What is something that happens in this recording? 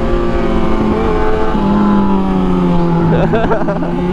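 Another motorcycle engine roars as it rides alongside.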